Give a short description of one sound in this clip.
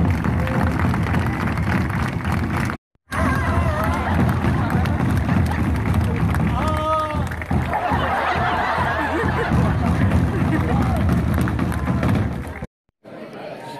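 Large drums pound loudly in a fast rhythm.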